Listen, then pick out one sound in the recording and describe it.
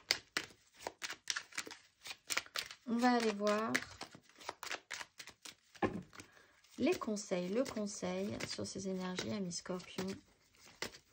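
Cards riffle and slap softly as a deck is shuffled by hand.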